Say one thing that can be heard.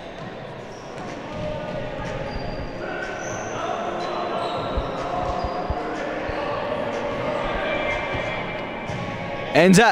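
Men shout to each other across an echoing gym.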